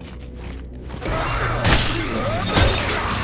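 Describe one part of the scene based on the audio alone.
A monster screeches as it lunges.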